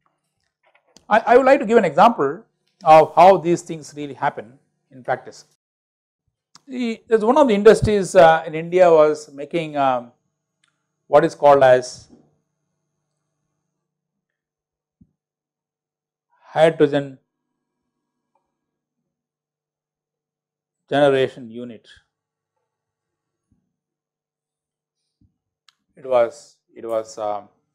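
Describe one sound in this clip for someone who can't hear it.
A middle-aged man speaks calmly into a clip-on microphone, pausing often.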